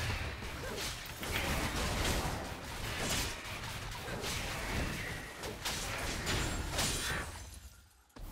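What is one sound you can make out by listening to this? Magic spell effects whoosh and crackle in quick bursts.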